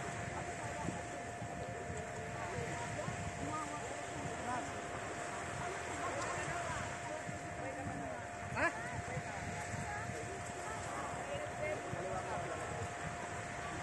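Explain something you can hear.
Children and adults chatter and shout nearby and far off across an open beach.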